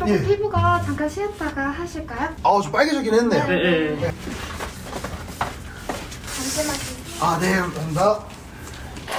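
A young man speaks softly nearby.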